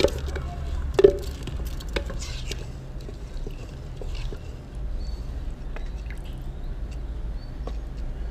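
A wooden spoon knocks and scrapes against a metal pot.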